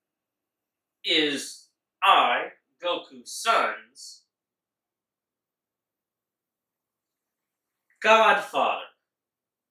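A man speaks loudly and with animation close by, in short bursts.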